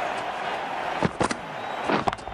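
A bat strikes a ball with a sharp crack.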